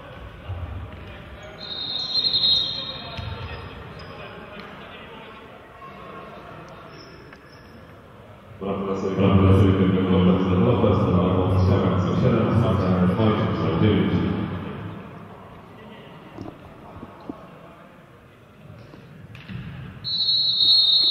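A ball thumps on a hard floor in an echoing hall.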